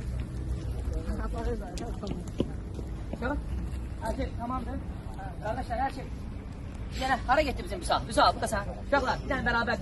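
A man speaks loudly to a group outdoors.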